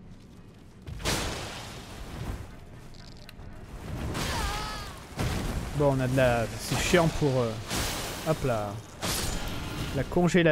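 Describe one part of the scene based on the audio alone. Metal weapons slash and strike with heavy blows.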